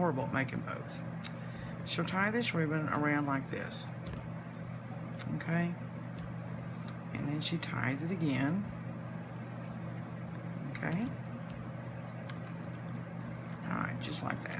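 A satin ribbon rustles softly as it is tied and pulled.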